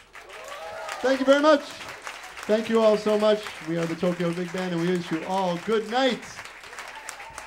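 A harmonica plays a wavering solo melody.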